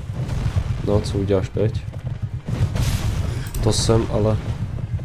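Metal blades clash and swing with sharp swooshes.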